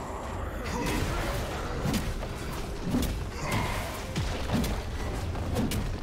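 Magic spell effects crackle and whoosh in a fight.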